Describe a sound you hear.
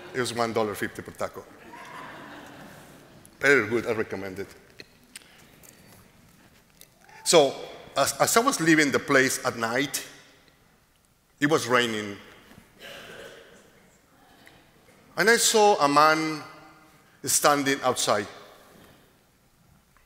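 A man speaks calmly and slowly through a microphone in a large echoing room.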